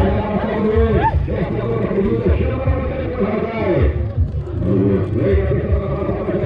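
Horses gallop with hooves thudding on soft dirt.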